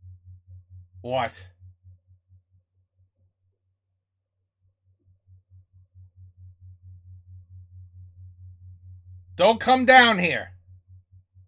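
A man speaks briefly and casually, close to a microphone.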